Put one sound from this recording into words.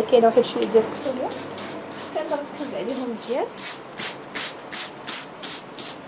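A spray bottle squirts several times.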